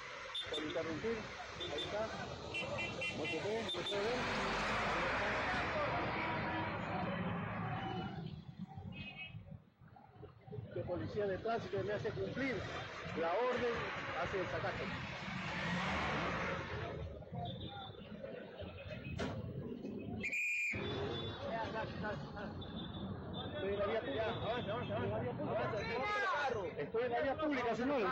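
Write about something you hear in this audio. Traffic rumbles along a busy street.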